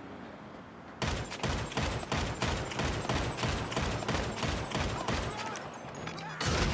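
A gun fires a rapid string of loud shots.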